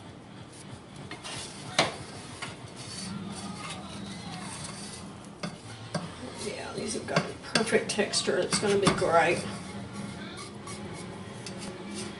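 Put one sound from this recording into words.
A wooden spoon scrapes and knocks against a metal pot while stirring.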